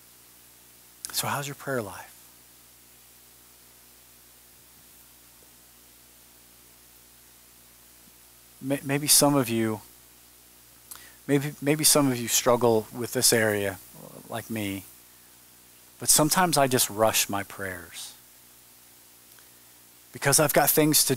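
A middle-aged man speaks slowly and deliberately through a headset microphone, with long pauses.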